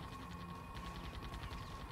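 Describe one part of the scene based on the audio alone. Laser weapons zap and buzz repeatedly.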